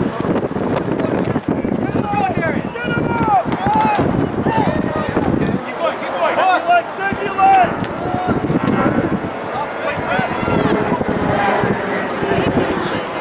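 Young players shout to each other across an open field in the distance.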